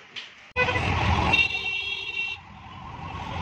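A vehicle horn honks.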